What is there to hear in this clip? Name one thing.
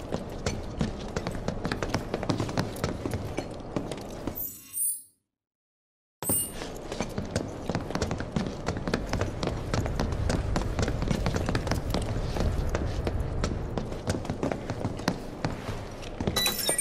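Footsteps run quickly across a hard metal floor.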